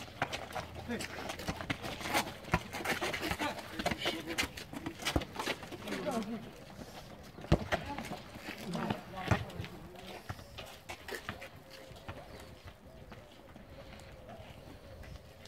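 Shoes scuff and patter on concrete as men run.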